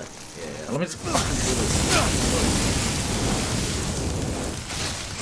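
A flamethrower roars with a loud, steady rush of fire.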